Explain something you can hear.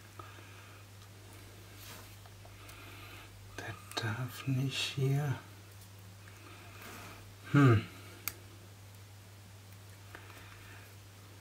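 A small screwdriver turns a screw in plastic with faint scraping clicks.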